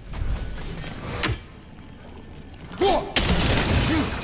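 A heavy axe strikes with a sharp, ringing impact.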